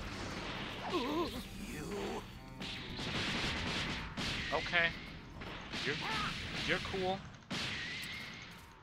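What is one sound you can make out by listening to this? Energy blasts crackle and burst in quick bursts.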